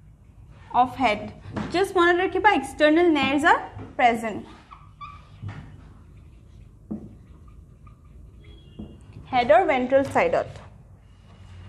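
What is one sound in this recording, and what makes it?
A woman speaks in a clear teaching voice.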